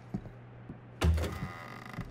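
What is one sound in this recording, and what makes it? A door handle turns with a click.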